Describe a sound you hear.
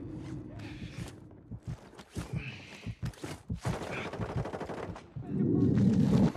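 Footsteps thud quickly on hard stairs.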